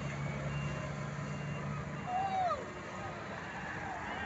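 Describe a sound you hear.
A diesel dump truck passes by.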